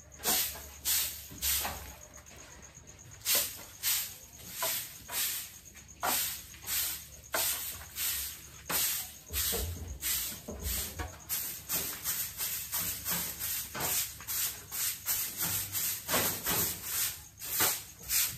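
A broom sweeps a hard floor in quick, rhythmic swishing strokes.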